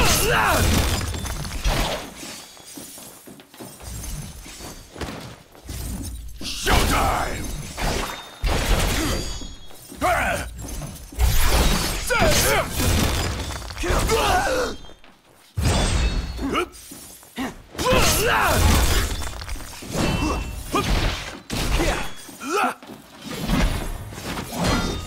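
Swords clash and slash in quick fighting.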